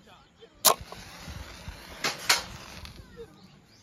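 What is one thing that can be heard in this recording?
A match strikes and flares with a hiss.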